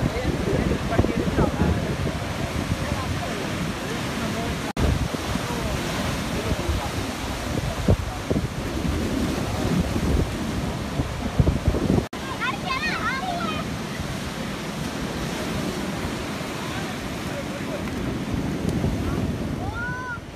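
Rough surf roars and churns against a sea wall.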